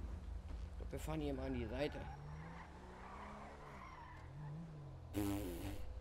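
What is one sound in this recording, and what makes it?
A police siren wails in short, rising and falling bursts.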